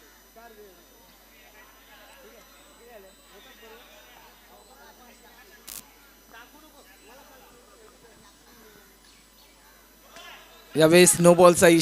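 Several people chatter quietly outdoors in the distance.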